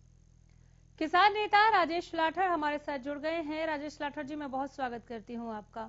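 A young woman speaks clearly into a microphone, reading out news.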